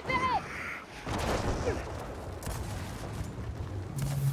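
Heavy gunfire blasts in rapid bursts.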